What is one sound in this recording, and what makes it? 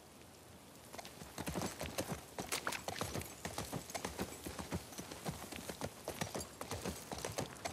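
Horse hooves clop steadily on hard ground.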